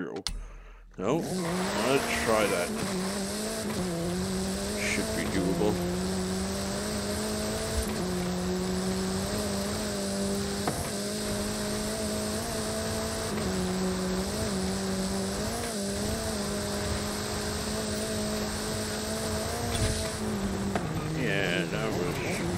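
A car engine roars loudly, revving up through the gears and then holding at high speed.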